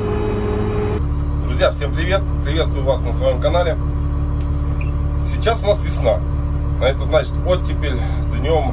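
A young man speaks calmly close by.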